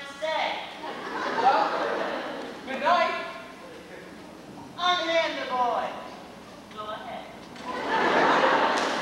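A young woman speaks in a raised voice on a stage.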